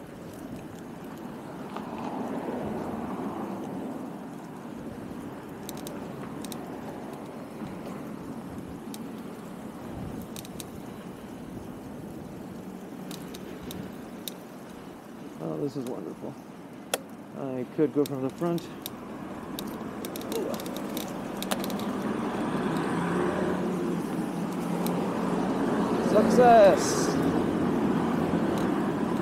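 Bicycle tyres rattle over paving stones.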